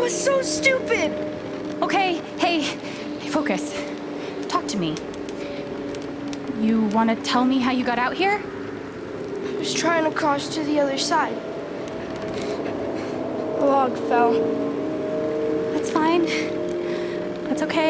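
A boy speaks in an upset, shaky voice.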